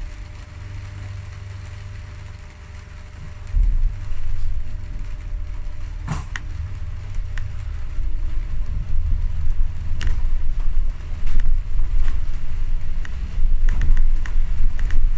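A vehicle rumbles along a wet street.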